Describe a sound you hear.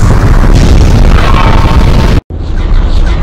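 Giant machines clash with a heavy metallic crash.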